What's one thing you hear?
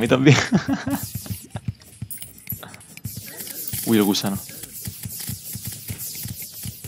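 Quick electronic game effects of fighting click and clatter rapidly.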